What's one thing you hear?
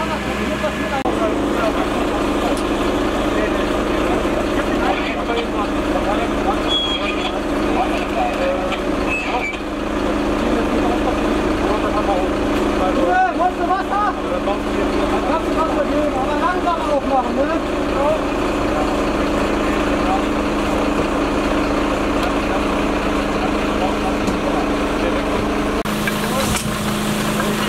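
A fire engine's motor hums steadily nearby.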